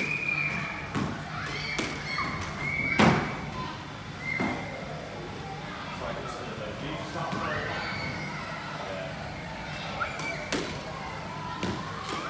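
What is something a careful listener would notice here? A squash ball smacks against walls, echoing in a hard-walled court.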